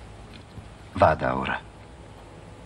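A middle-aged man speaks quietly and briefly, close by.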